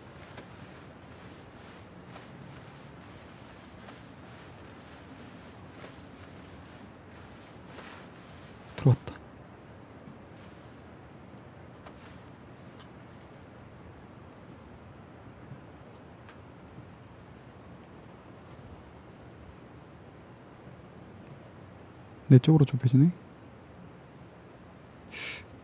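Grass rustles softly as a soldier crawls through it.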